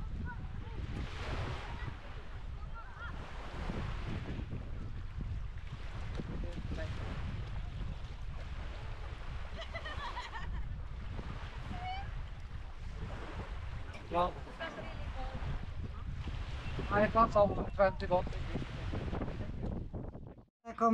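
Small waves wash onto the shore and gently break.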